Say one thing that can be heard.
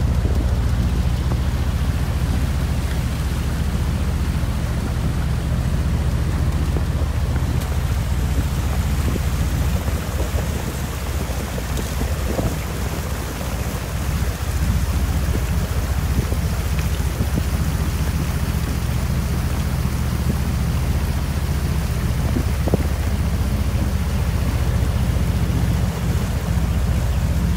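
Water splashes and rushes past the hull.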